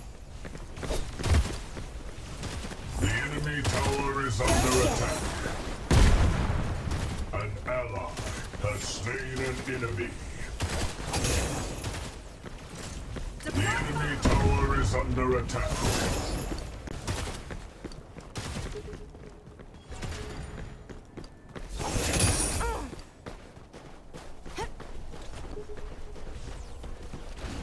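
Swords clash and magic blasts crack.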